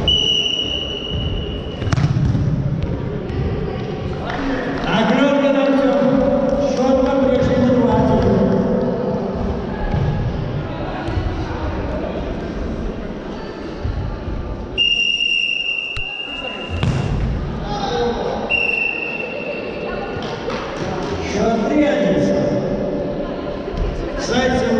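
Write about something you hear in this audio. Boys shout to each other across the echoing hall.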